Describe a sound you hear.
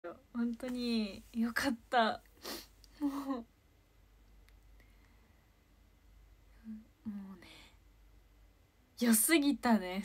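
A young woman talks cheerfully close to the microphone, with pauses.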